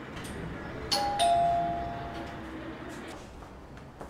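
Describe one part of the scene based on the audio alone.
A man knocks on a wooden door.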